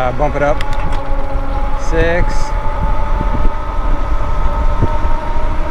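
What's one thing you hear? An electric bicycle motor whines steadily.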